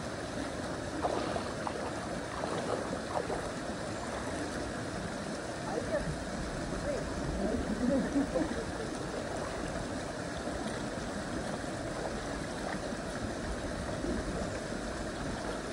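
Water splashes as a man wades in a shallow stream.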